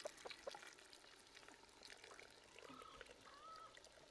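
Water pours into a glass jar.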